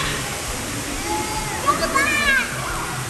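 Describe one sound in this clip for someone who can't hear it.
A woman laughs and speaks.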